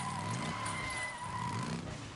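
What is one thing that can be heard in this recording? Tyres rattle over wooden planks.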